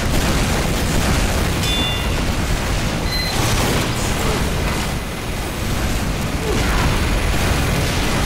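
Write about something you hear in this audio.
Video game explosions boom.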